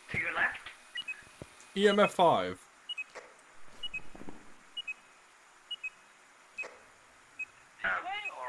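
An electronic meter beeps softly at a steady pace.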